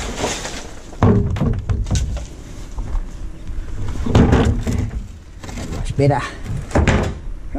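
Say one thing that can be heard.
A plastic bin lid clatters and bangs.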